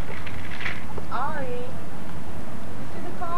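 A woman calls out in a high, coaxing voice close by.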